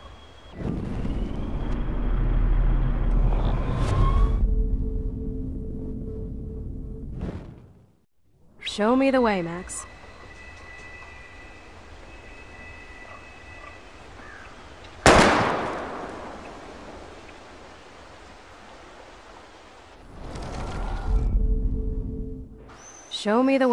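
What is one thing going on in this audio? A deep, rumbling rewind effect whooshes and warbles, then fades.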